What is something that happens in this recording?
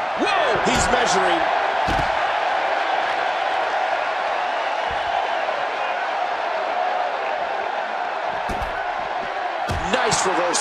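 A body thuds heavily onto a floor.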